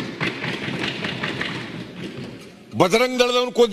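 An elderly man speaks firmly into a microphone in a large hall.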